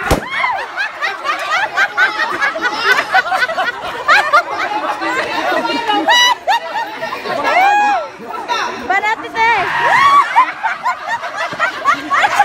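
A crowd of adults laughs and shouts excitedly close by, outdoors.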